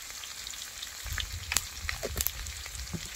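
Water pours from a jug into a hot wok.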